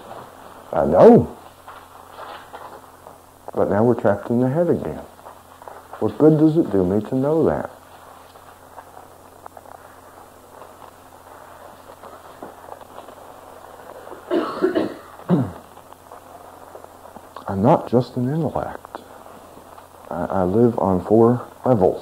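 A middle-aged man speaks calmly into a microphone in short bursts with pauses.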